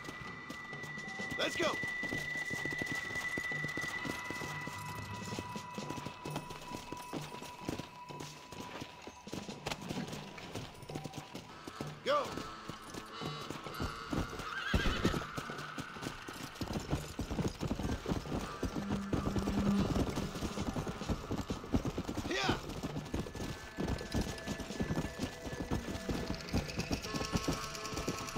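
A horse's hooves pound steadily on the ground at a gallop.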